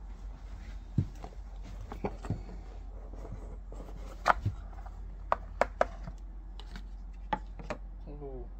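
Cardboard box lids scrape and tap as they are pulled apart.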